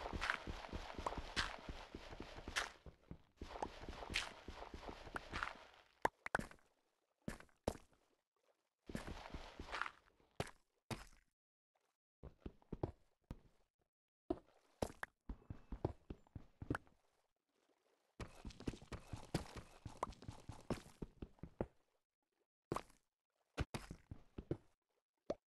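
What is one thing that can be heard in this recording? A pickaxe taps and chips at stone blocks in a game, in quick bursts.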